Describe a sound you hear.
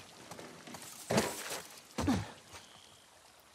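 Clothing rustles and a body thumps while someone climbs through a window frame.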